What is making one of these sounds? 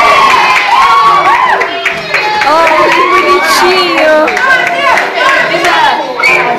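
A crowd of young people sings and shouts nearby.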